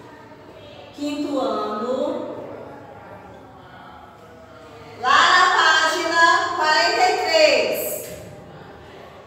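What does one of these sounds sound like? A woman speaks aloud slowly and clearly close by.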